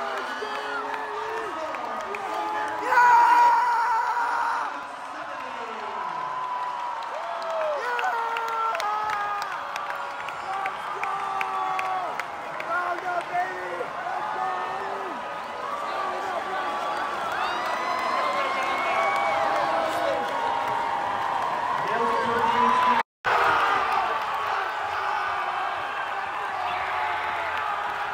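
Many voices sing and chant together in a large crowd.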